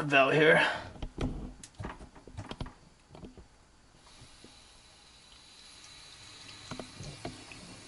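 Fingers tap and click against a metal water valve.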